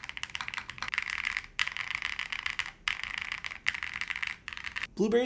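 Keys on a mechanical keyboard clack rapidly in quick bursts of typing.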